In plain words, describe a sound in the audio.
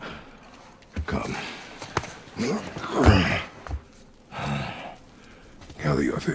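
A man speaks in a low, deep voice nearby.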